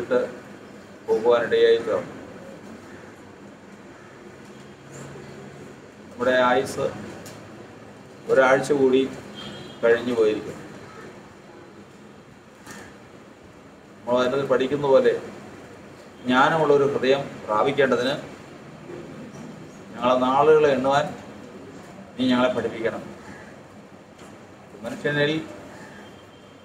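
An elderly man speaks calmly in short phrases with pauses, close by.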